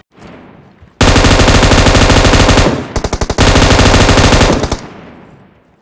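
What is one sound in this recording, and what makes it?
An automatic rifle fires long rapid bursts.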